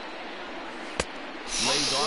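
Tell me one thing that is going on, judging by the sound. A pitched ball smacks into a catcher's mitt.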